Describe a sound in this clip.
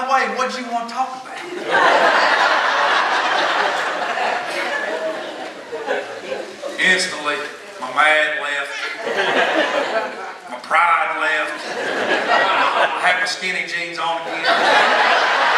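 A man speaks over loudspeakers in a large echoing hall.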